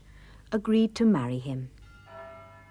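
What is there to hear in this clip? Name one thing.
A young girl speaks brightly.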